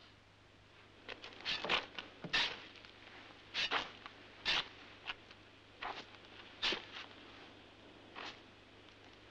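A shovel scrapes and digs into sand.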